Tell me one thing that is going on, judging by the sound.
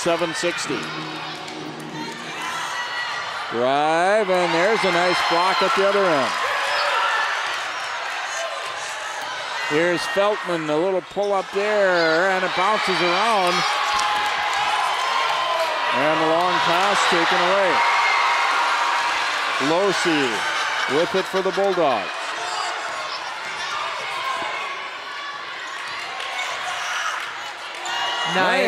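A large crowd murmurs and cheers in an echoing gym.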